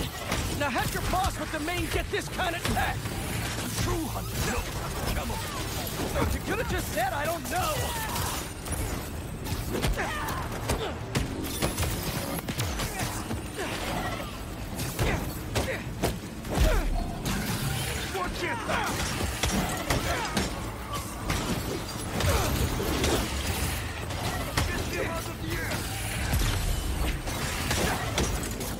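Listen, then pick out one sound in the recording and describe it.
Punches, blasts and impacts crash throughout a video game fight.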